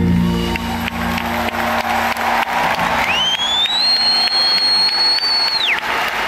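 A live band plays music in a large echoing arena.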